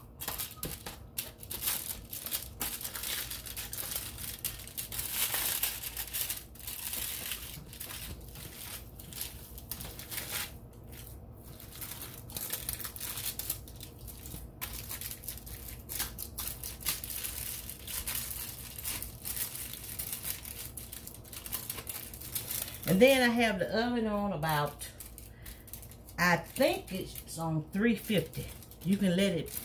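Aluminium foil crinkles and rustles.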